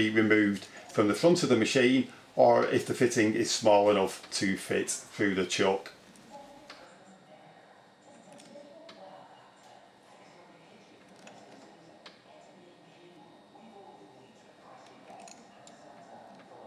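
A wrench clinks against a metal pipe fitting.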